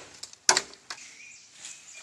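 A blade chops into bamboo with a sharp crack.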